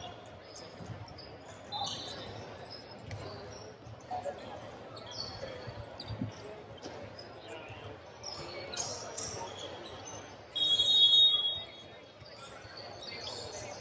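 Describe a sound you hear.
A crowd of young people chatter in the background.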